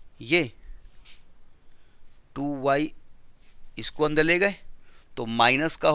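A middle-aged man speaks through a headset microphone, explaining in short bursts.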